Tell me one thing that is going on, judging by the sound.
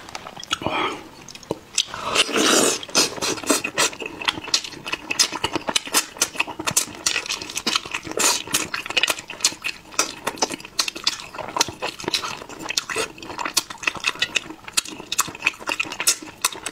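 A man chews and slurps food wetly and loudly, close to a microphone.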